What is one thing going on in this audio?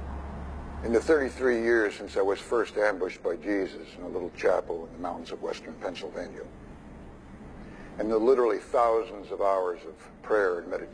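A man talks calmly at length.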